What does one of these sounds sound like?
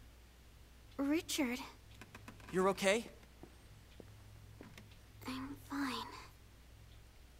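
A young woman speaks quietly into a phone.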